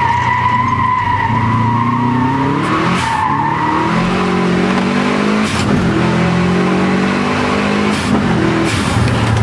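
A car engine revs hard, rising and falling as gears shift.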